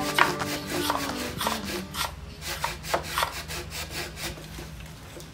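A hammer taps sharply on hollow bamboo.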